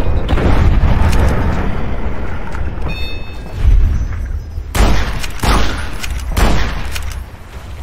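A lever-action rifle fires loud shots.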